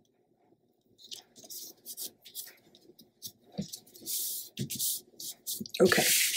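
Paper rustles and scrapes as hands smooth and press it down.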